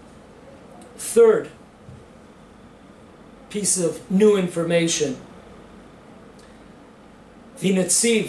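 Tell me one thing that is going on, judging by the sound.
An elderly man reads aloud calmly and close by, with pauses.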